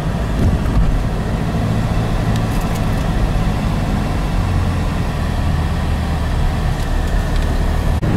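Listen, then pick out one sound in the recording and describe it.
Traffic rumbles by on the road nearby.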